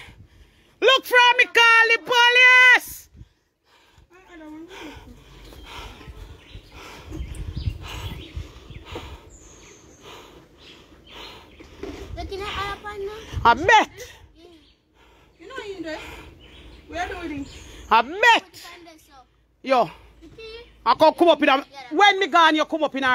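A middle-aged woman speaks close by with animation, now and then calling out loudly.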